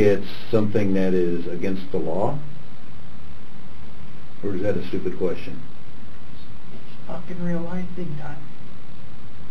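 A young man speaks quietly in short, halting bursts.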